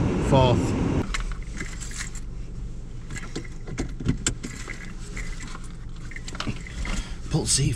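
A seatbelt rustles as it is pulled and clicks into its buckle.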